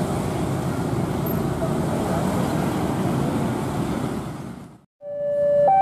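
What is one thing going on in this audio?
A train rumbles and clatters as it pulls away along the tracks.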